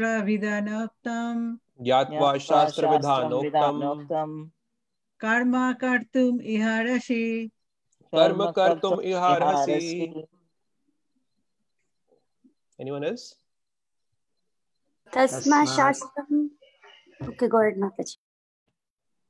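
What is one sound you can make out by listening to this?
A man speaks calmly through an online call, reading out and explaining.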